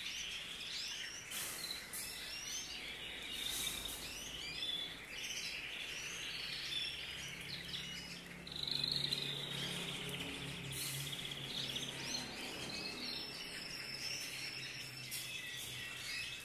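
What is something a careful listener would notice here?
A wire cage rattles and clinks as it is handled.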